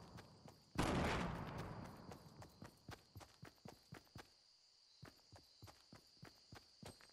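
Footsteps run quickly through grass.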